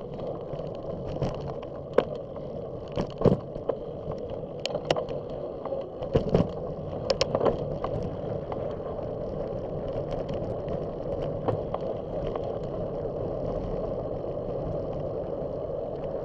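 Tyres roll over rough pavement, bumping and rattling.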